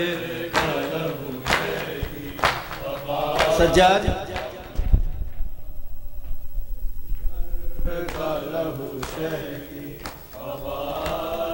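A group of men chant together in a large echoing room.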